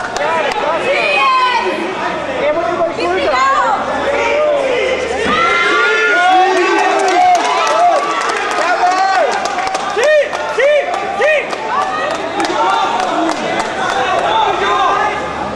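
A crowd of spectators shouts and yells, men's voices overlapping.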